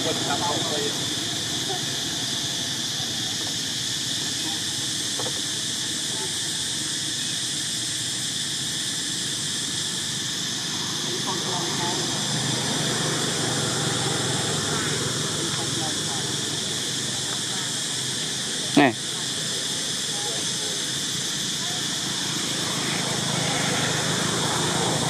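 A monkey chews and munches on fruit close by.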